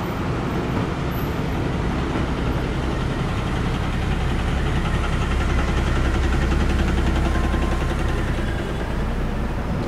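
A bus engine idles nearby with a low rumble.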